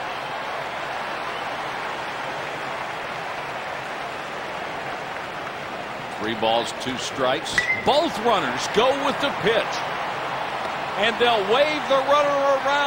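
A crowd murmurs steadily.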